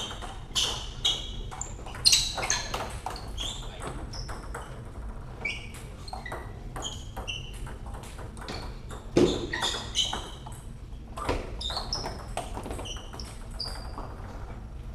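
Shoes squeak on the floor.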